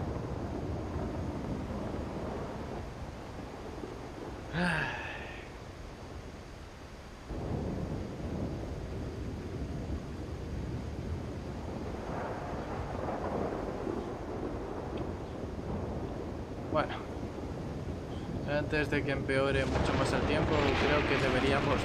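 Water laps softly against a shore.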